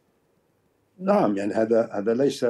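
A middle-aged man speaks with animation over a remote call.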